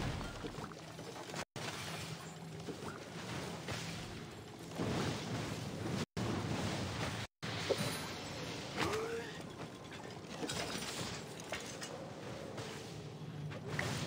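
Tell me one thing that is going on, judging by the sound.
Magic attacks whoosh and crackle in a game battle.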